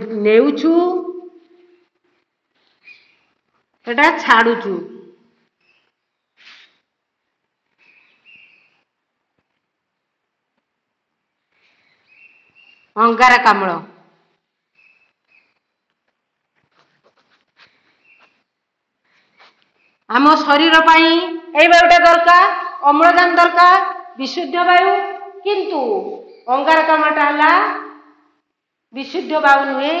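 A woman speaks clearly and with animation, close by, in short bursts and then at length.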